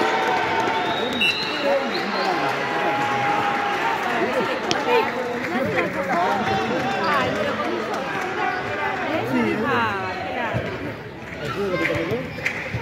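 Children shout and cheer throughout a large echoing hall.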